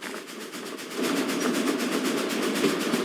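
A steam locomotive chugs close by.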